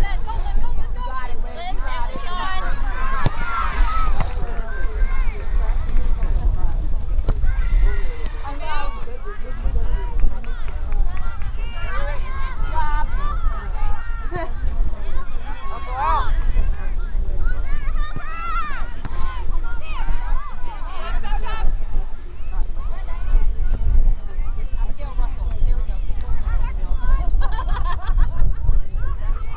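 Young women shout and call to each other outdoors, some distance away.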